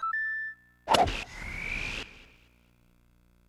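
A ball whooshes through the air and fades.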